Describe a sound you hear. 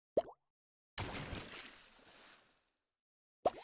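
A splash of water whooshes and fades.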